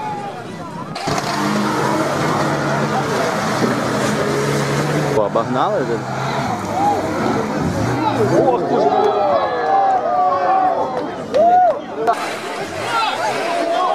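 A car engine roars as tyres churn through mud.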